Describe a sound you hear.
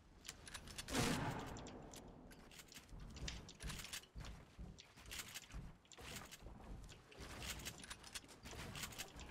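Building pieces snap into place in a video game.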